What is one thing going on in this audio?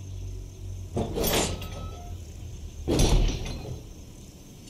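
Heavy iron gates creak open with loud clangs.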